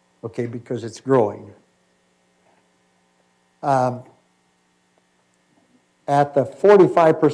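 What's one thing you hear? A middle-aged man speaks into a microphone in a lecture, pausing between phrases.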